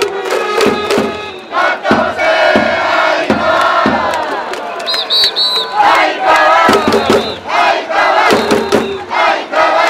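Fans clap in rhythm.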